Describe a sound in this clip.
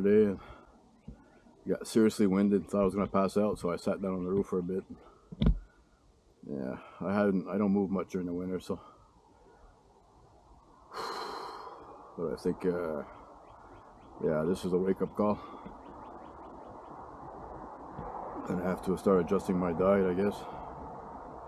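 A middle-aged man talks calmly close by, in short bursts with pauses.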